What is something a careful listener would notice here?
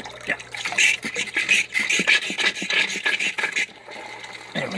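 Water sprays and splashes hard into a tub of water.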